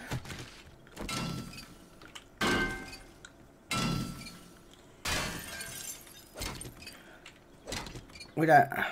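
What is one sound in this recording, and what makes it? A metal wrench clangs repeatedly against an iron radiator.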